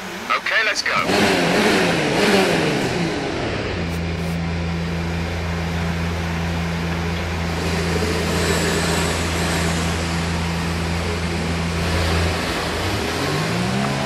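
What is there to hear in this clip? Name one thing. A racing car engine starts and idles with a steady hum.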